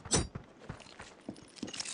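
A knife blade clicks and flips in a hand.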